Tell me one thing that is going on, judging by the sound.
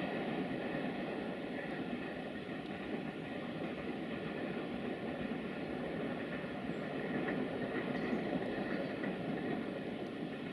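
Wind blows steadily through snowy trees outdoors.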